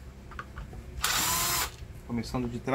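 An electric screwdriver whirs briefly.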